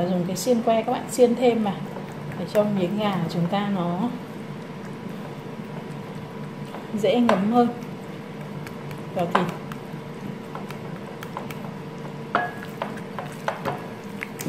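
Hands squish and rub raw meat in a bowl.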